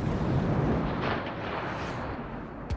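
An explosion booms.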